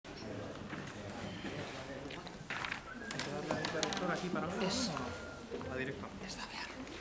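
Several adults murmur and talk quietly nearby.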